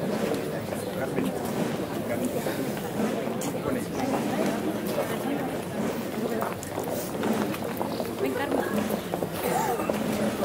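Many footsteps shuffle along a paved street.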